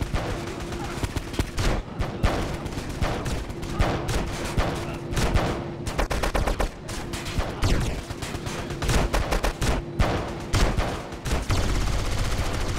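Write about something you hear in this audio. Guns fire in rapid, repeated bursts.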